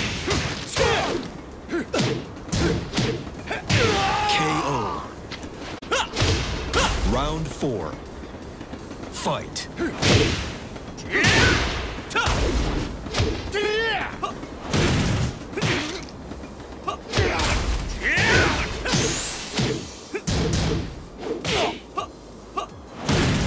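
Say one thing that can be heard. Punches and kicks land with sharp smacks and thuds.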